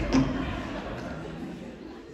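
A heavy thud rings out on a wooden stage.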